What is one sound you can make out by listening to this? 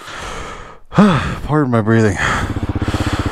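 A motorcycle engine starts and revs up.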